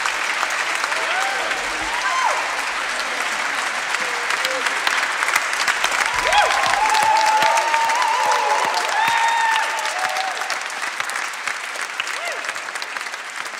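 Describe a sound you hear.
Audience members whistle and cheer.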